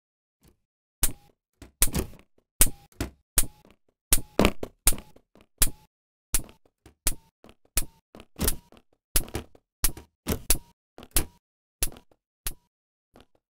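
Quick footsteps tap along a hard floor.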